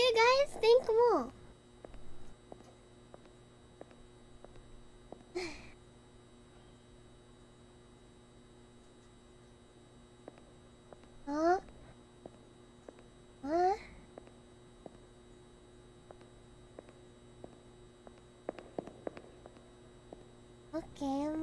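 A young woman speaks with animation into a microphone, in short high-pitched bursts.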